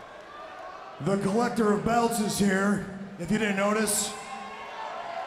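A man speaks loudly and forcefully into a microphone.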